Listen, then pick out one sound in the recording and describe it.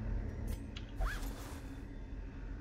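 A sack rustles open with a bright shimmering chime.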